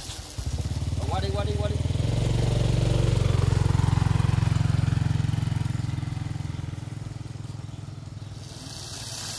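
A small engine putters steadily close by, then slows and dies away.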